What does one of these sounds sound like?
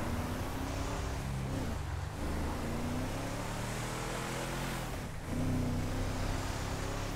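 A truck engine revs and roars, rising and falling in pitch.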